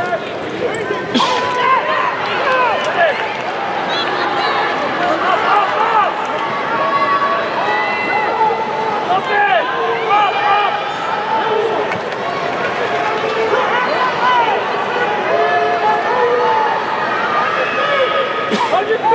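Many voices in a crowd shout encouragement, growing louder from about eight seconds.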